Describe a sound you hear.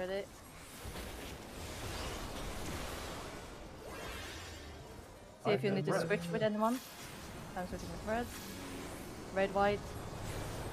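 A woman talks with animation into a close microphone.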